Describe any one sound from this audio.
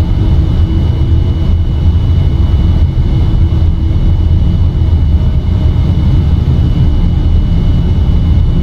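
Jet engines rumble with a steady, deep roar.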